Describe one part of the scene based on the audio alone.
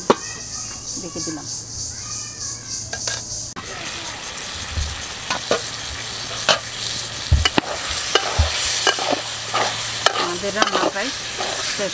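A wood fire crackles and pops under a pot.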